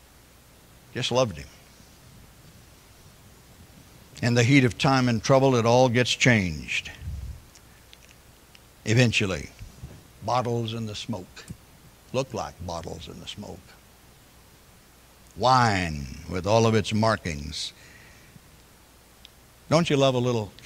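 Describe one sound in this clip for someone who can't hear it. An elderly man speaks calmly through a microphone, with pauses between phrases.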